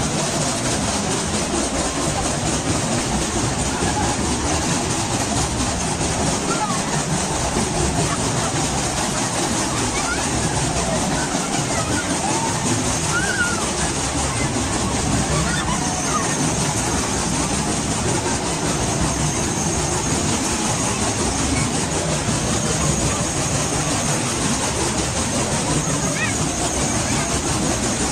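A fairground ride whirls and rattles steadily.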